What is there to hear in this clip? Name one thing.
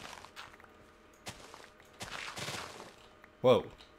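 Dirt crunches softly as it is dug out in short bursts.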